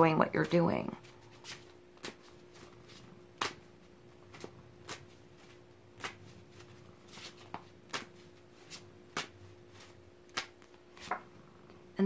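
Cards riffle and click as a deck is shuffled.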